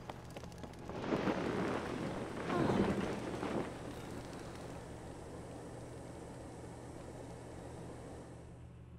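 A flame roars loudly, then fades to a soft hiss.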